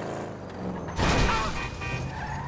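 A car crashes into another with a loud metallic bang.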